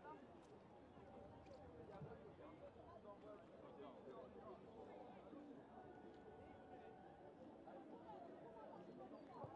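A crowd of spectators chatters steadily outdoors nearby.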